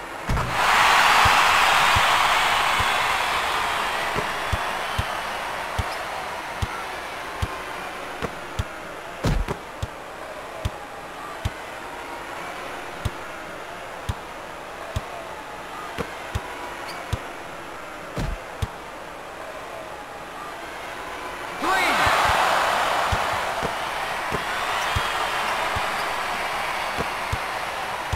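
A basketball bounces on a wooden floor in a steady rhythm.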